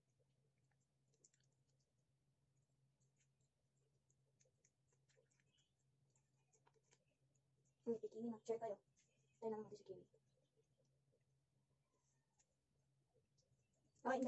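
A cat licks and nibbles softly at a treat.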